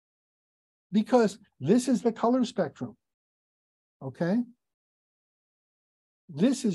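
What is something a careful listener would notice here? A middle-aged man speaks calmly through a microphone in an online call.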